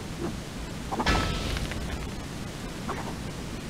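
A burst of sand hisses and whooshes.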